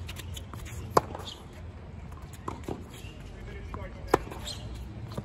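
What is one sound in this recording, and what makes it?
Tennis balls pop sharply off racquets in a rally.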